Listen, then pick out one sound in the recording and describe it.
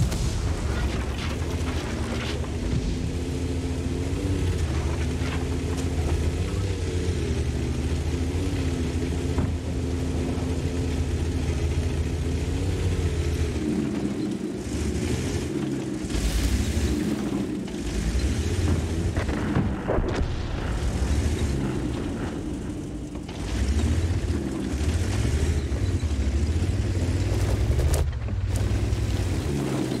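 A heavy tank engine rumbles and roars low and steady.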